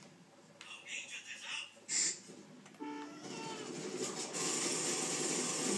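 Video game sound effects play from a television speaker.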